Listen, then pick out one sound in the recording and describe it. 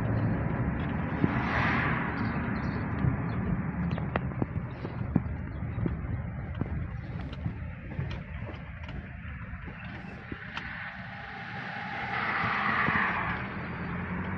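A car engine hums low and steady from inside a moving car.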